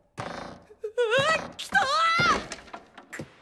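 A young boy cries out in alarm.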